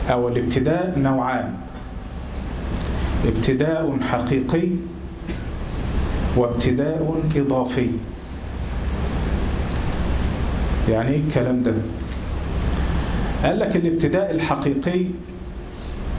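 A man speaks calmly into a microphone, in phrases with pauses.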